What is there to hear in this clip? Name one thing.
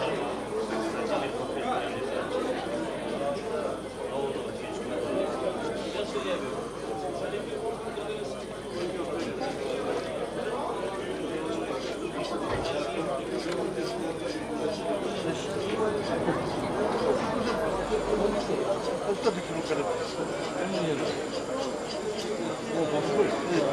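A crowd of men and women chatters outdoors throughout.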